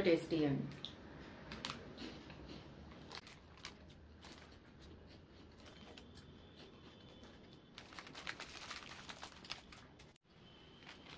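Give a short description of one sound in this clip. A plastic snack packet crinkles and rustles close by.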